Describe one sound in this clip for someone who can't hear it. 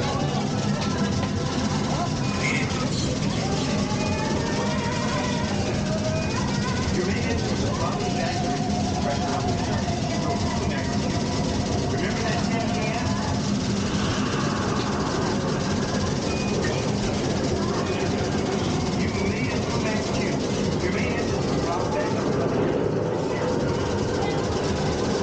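A ride vehicle rumbles and hums steadily.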